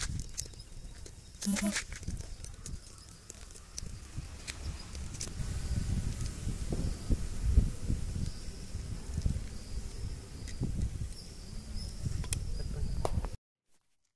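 Metal tools click and clink against a pipe.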